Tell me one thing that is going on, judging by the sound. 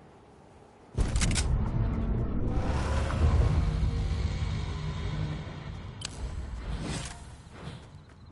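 A character lands with a heavy thud and a rumbling whoosh.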